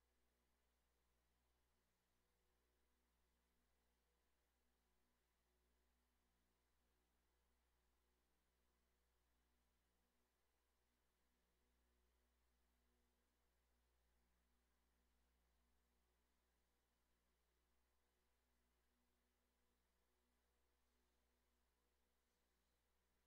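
An indoor bike trainer whirs steadily.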